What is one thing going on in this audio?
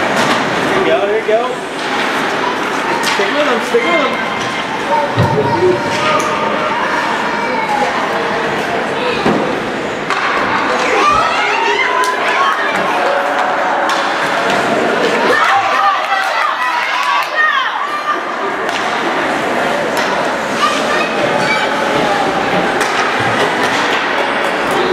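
Young players and spectators shout and call out in a large echoing rink.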